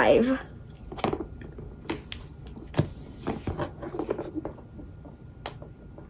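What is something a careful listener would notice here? A plastic popper toy clicks and snaps as it is bent.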